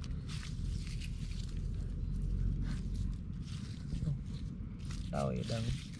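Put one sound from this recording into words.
Hands rummage through leaves in a wicker basket.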